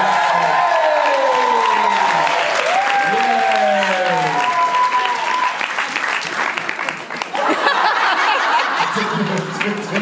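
Hands clap steadily.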